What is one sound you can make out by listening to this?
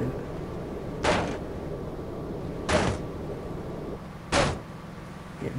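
A bat strikes a car's body with loud crashing blows.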